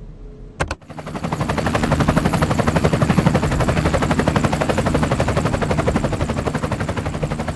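A helicopter's rotor roars steadily close by.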